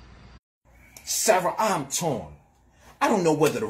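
A young man speaks loudly and with animation, close by.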